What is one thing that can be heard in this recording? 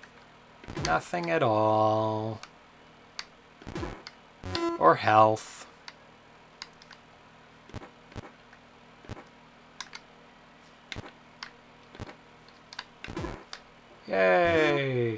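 Electronic game tones sound in short bursts that slide down in pitch.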